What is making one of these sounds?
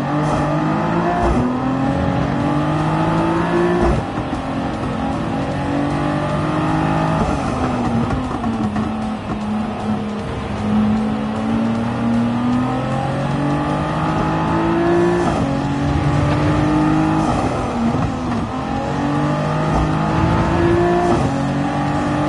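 A racing car engine revs high and drops with each gear change.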